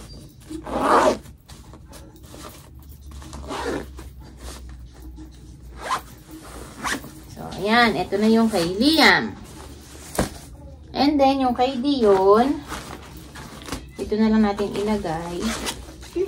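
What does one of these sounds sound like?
Fabric rustles as clothes are packed into a zippered pouch.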